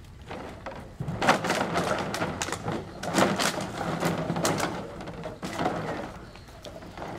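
A small dog splashes about in shallow water.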